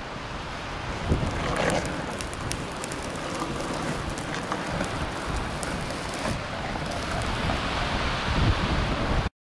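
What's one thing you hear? Wind blusters over an open hilltop.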